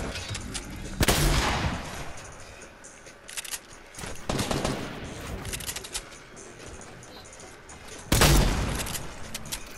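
Gunshots ring out in short, loud bursts.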